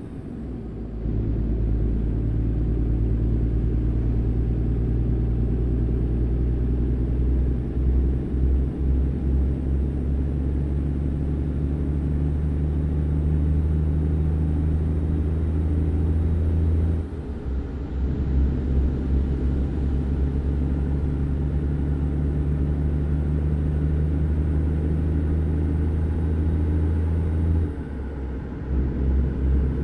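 A truck engine drones steadily at speed, with brief shifts in pitch.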